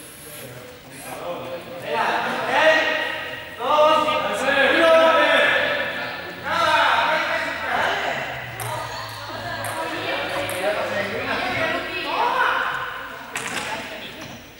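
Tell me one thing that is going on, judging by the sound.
Young people talk and shout in a large echoing hall.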